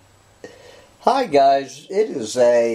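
A middle-aged man speaks calmly, close to a microphone.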